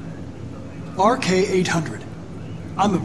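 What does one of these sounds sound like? A man answers in a calm, even voice.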